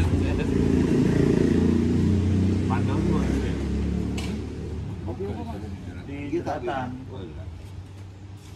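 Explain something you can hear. Men talk calmly nearby.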